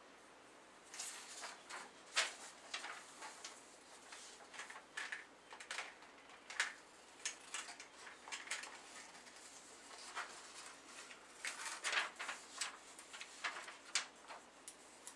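A pen scratches and taps on paper close by.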